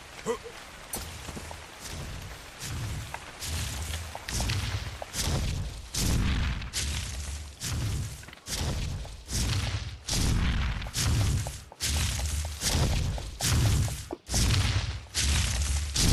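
Leafy bushes rustle in quick, repeated bursts as berries are picked.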